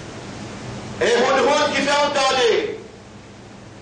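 A man chants a drawn-out melodic phrase.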